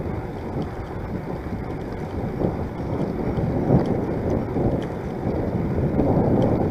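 Bicycle tyres roll on a paved path.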